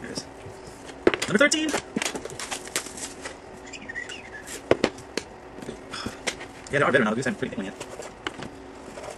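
Plastic packaging rustles and crinkles as a man opens a box.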